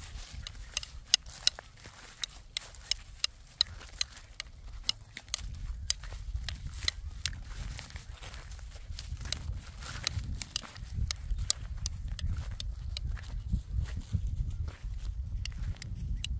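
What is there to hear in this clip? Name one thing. Dry straw crackles and crunches under small footsteps.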